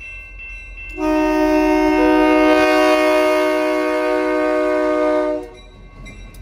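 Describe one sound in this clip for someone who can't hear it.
A locomotive horn blares loudly, close by.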